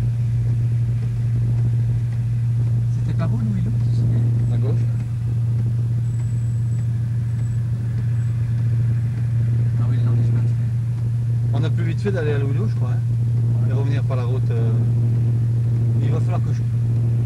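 Tyres roll over a muddy dirt road.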